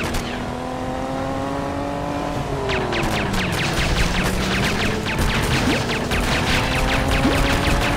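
Water splashes behind a speeding motorboat.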